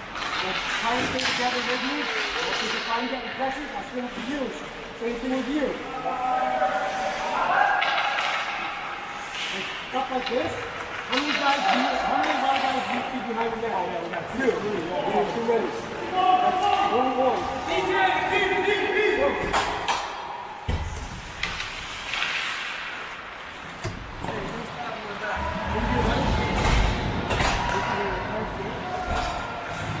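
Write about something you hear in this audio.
Ice skates scrape and carve across a rink.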